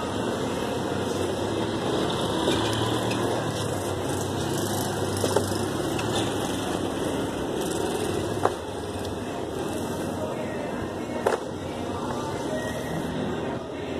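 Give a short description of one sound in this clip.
Rubber mats scrape and drag across the ground.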